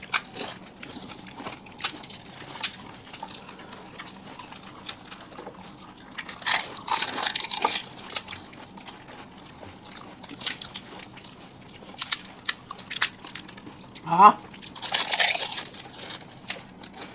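Crisp hollow shells crunch loudly as people bite into them, close to a microphone.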